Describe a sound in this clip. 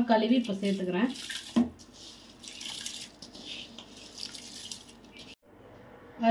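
Rice pours and splashes into a pot of simmering liquid.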